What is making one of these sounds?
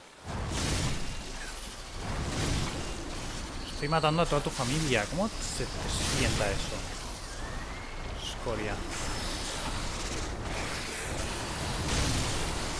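A blade swishes through the air in repeated strikes.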